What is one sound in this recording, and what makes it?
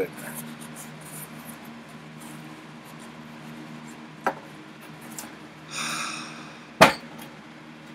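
Cardboard rustles and scrapes as a package is opened.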